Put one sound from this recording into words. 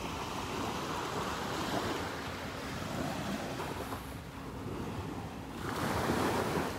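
Small waves lap gently onto a shore.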